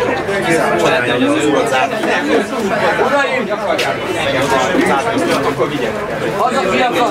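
Several men talk over one another loudly and agitatedly, close by.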